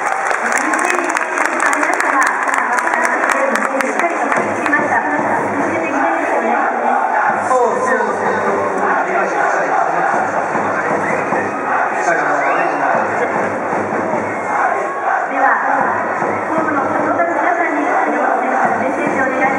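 A woman asks questions into a microphone, heard over loudspeakers.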